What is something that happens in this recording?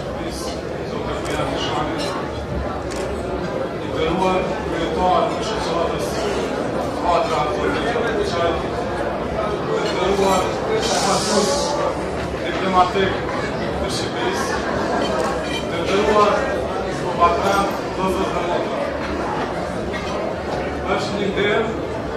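A young man speaks steadily into a microphone in a room with a slight echo.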